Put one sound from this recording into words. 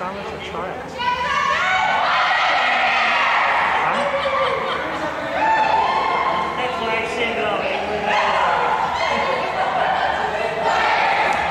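A crowd of girls cheers loudly.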